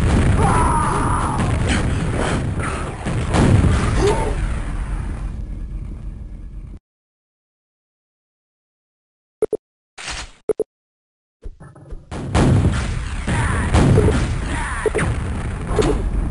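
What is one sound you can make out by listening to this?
A rocket launcher fires with loud blasts.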